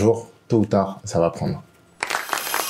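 A young man speaks cheerfully and close to a microphone.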